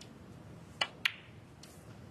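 Snooker balls knock together with a crisp click.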